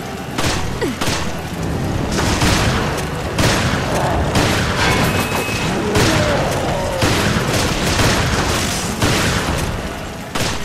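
Shotgun blasts ring out one after another in an echoing metal corridor.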